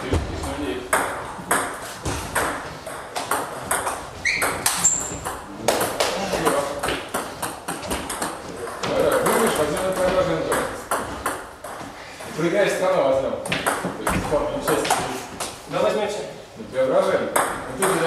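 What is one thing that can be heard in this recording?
A ping pong ball clicks back and forth on paddles and a table, echoing.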